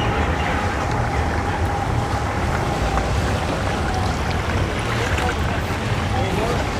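Water churns and splashes behind a boat.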